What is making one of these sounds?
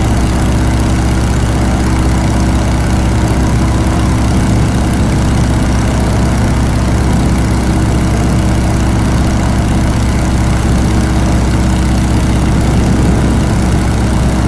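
A propeller engine drones steadily and loudly close by.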